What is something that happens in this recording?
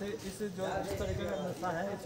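A man speaks calmly to a group.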